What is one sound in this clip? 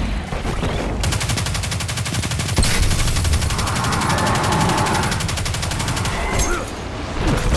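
A gun fires in fast, rapid bursts.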